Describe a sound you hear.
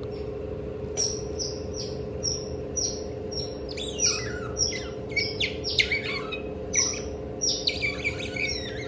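A small otter gives high, rapid squeaking chirps close by.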